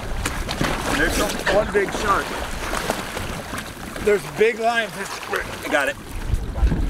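A man's voice calls out near the water.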